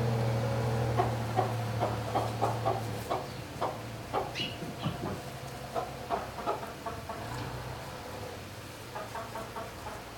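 Chickens cluck softly nearby.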